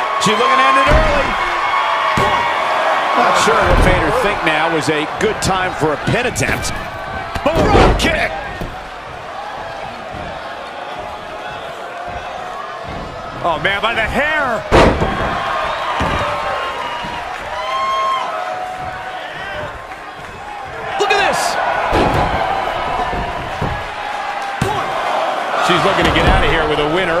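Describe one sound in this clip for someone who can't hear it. Bodies slam onto a wrestling ring's canvas.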